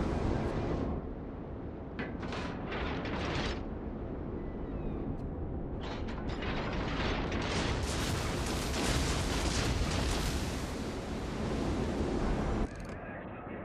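Water rushes along a moving ship's hull.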